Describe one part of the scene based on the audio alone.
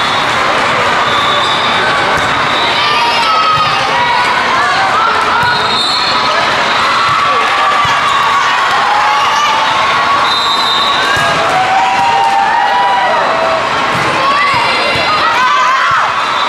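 A volleyball is struck with a hand with a dull smack.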